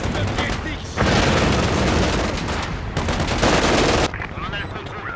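A heavy explosion booms and rumbles.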